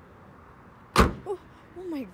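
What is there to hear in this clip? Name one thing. A car hood slams shut with a loud thud.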